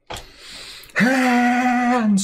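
A young woman makes a long, drawn-out cry close to a microphone.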